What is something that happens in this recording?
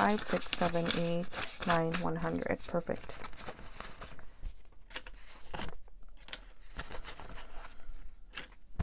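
Paper banknotes rustle and crinkle as they are handled.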